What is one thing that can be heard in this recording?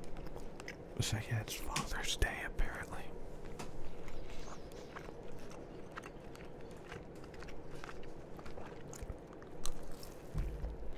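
A man bites into a crunchy wrap.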